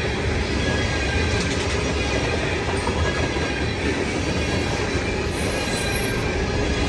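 A crossing bell rings steadily.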